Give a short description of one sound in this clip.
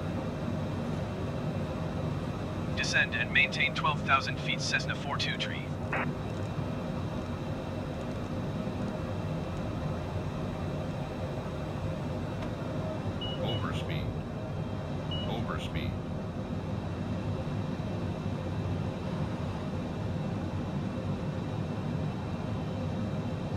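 Jet engines hum steadily.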